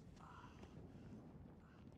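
Hands and knees scrape on a hard stone floor.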